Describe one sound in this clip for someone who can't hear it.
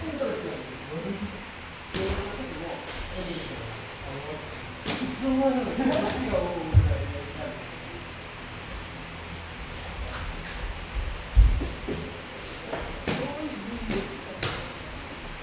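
Feet shuffle and thud on a canvas floor.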